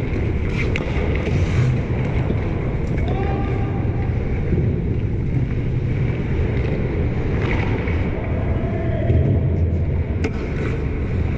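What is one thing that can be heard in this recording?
A hockey puck clacks against a stick.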